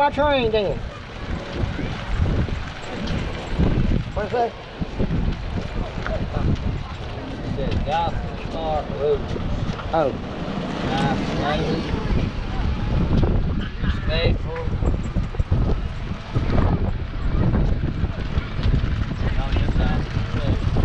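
Wind buffets loudly against the microphone outdoors.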